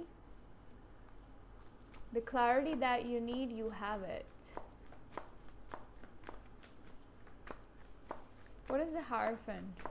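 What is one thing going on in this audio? Cards flick and rustle as a hand shuffles them.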